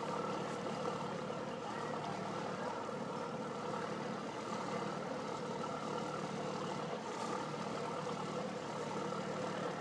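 A boat's engine hums steadily as the boat pulls away.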